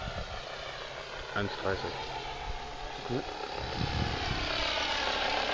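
A helicopter drones overhead in the distance.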